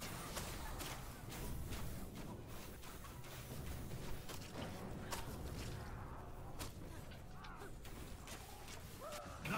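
Magic arrows whoosh through the air.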